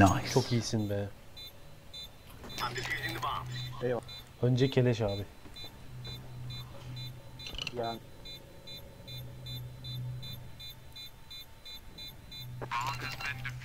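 An electronic bomb beeps over and over.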